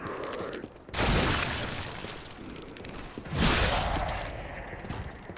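A heavy body rolls across rough ground with a loud rushing thud.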